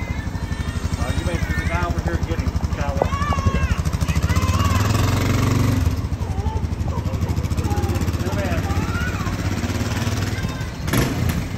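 A motorcycle engine idles with a steady low putter nearby.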